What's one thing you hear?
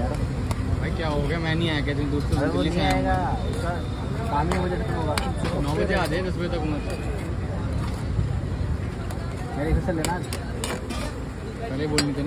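A metal ladle stirs and scrapes against a pan.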